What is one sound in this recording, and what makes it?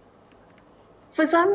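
A young woman speaks over an online call.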